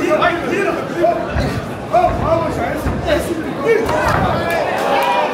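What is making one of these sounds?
Punches thud against a fighter's body.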